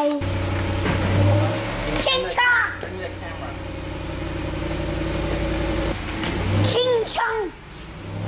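A car engine revs briefly.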